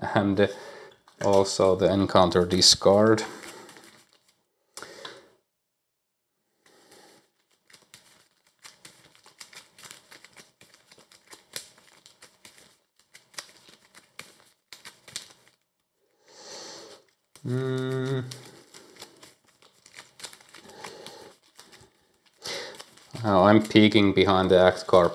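Playing cards rustle and click softly as they are handled and shuffled.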